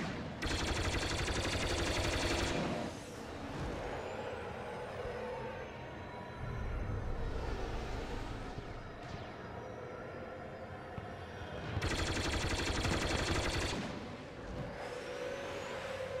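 A starfighter engine roars and whines steadily.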